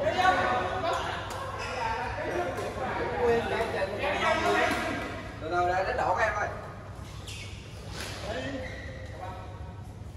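A man talks nearby in an echoing hall.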